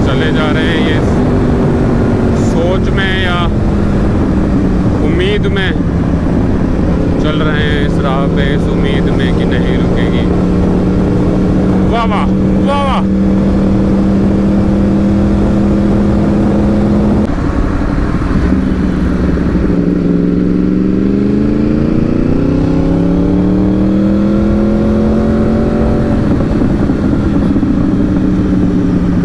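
Wind rushes past a moving motorcycle rider.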